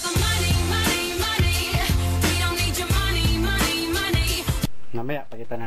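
A woman sings over a pop song with a heavy beat.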